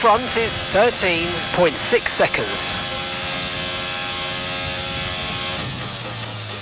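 A racing car engine screams at high revs, its pitch jumping as it shifts up through the gears.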